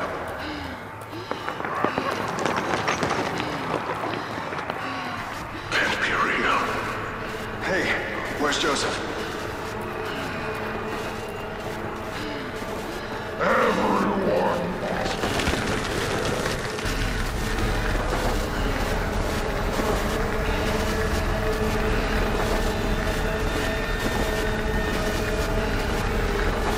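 Footsteps crunch on leaves and dirt.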